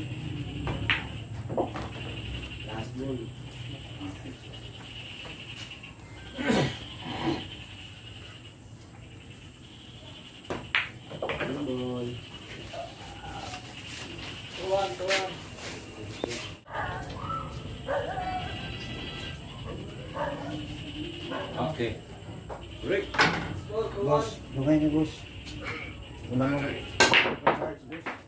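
Billiard balls click against each other on a table.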